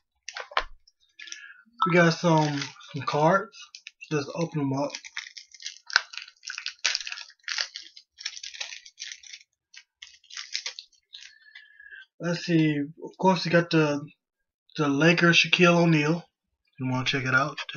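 Paper crinkles and rustles in a man's hands.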